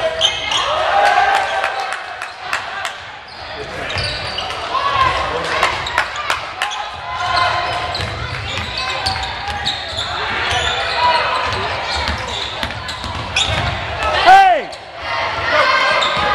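A basketball bounces with hollow thuds.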